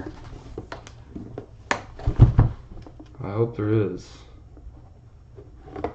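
Metal latches click open on a case.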